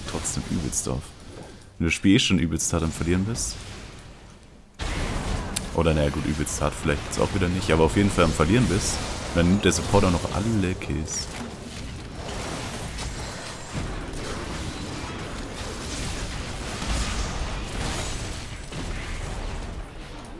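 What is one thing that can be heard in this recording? Magical blasts and strikes crackle and whoosh in a fight.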